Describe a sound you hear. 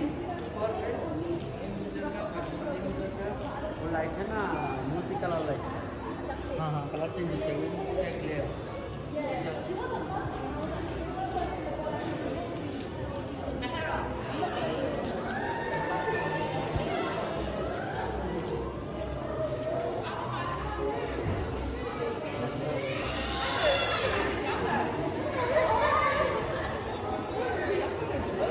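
A crowd of shoppers chatters and murmurs in a large echoing hall.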